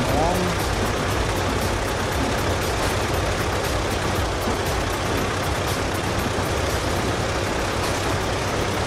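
A bus engine idles with a low steady rumble.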